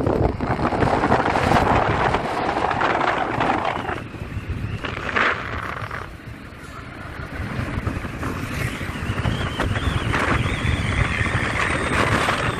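A vehicle rolls steadily along a paved road.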